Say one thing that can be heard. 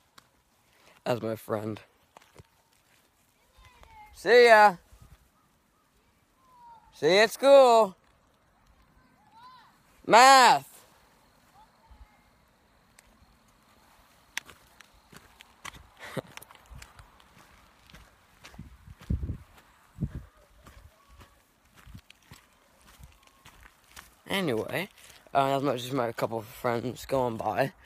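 A boy talks close by, in short bursts with long pauses.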